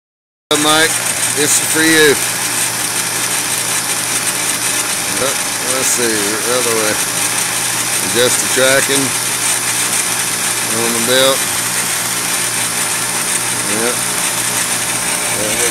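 A belt sander whirs steadily.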